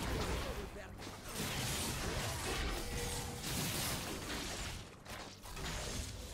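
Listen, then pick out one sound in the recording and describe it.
Weapons clash and strike repeatedly.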